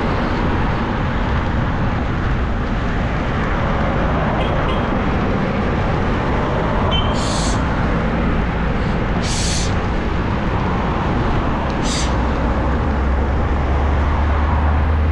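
A motorbike engine hums at low revs.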